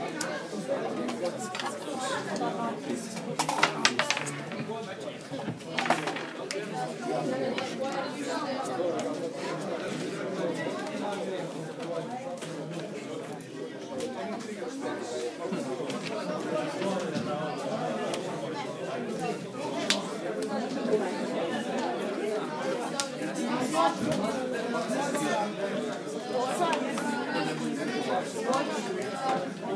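Playing cards tap and slide on a wooden table.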